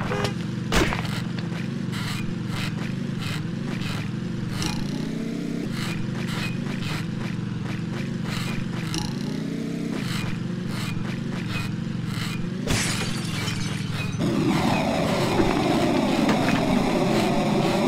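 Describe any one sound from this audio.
Game music plays with a bouncy beat.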